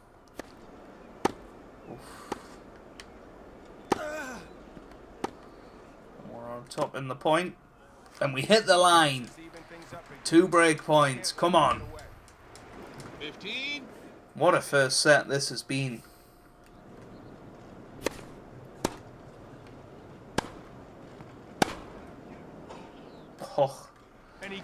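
A tennis ball is struck by rackets in a rally, with sharp pops.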